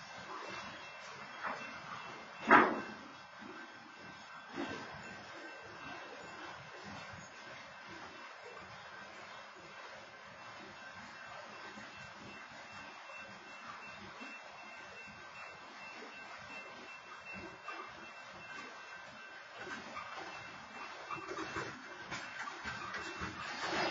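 A freight train rumbles and clatters past at a distance.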